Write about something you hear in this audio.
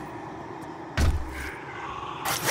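A heavy thud sounds as something lands hard.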